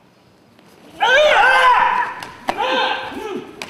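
A man gives loud, sharp shouts in a large echoing hall.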